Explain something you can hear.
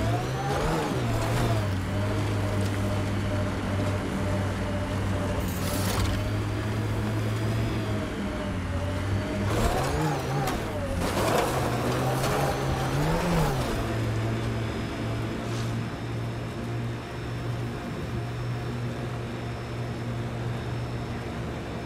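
A vehicle engine hums steadily and revs up and down.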